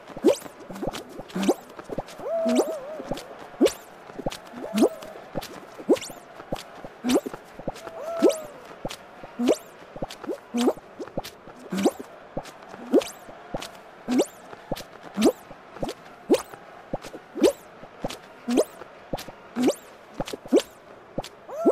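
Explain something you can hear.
Springy cartoon jump sounds pop again and again at a steady pace.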